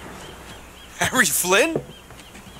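A young man answers with animation, close by.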